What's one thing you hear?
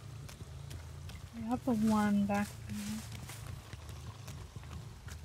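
Footsteps tread softly on forest ground.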